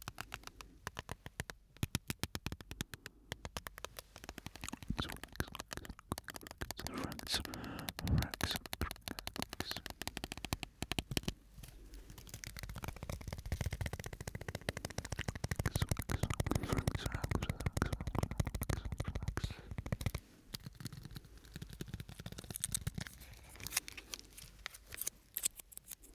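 Fingers tap and click rapidly close to a microphone.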